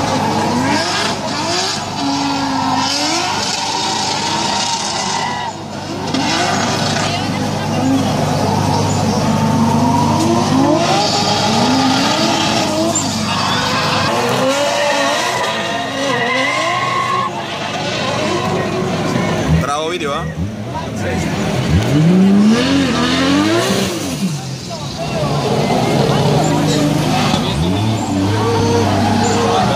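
Car engines roar and rev hard up and down.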